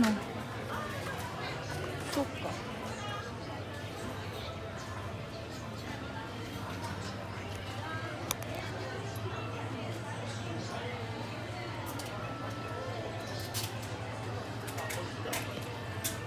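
A shopping cart rolls over a hard floor.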